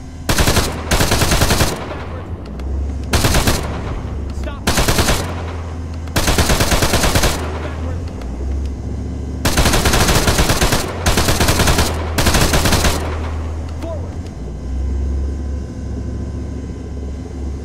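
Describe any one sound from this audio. An engine rumbles low and steady.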